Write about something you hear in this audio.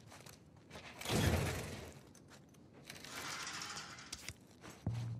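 A metal locker door creaks open with a clang.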